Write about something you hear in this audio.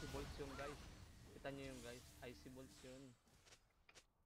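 A young man speaks casually, close to a microphone.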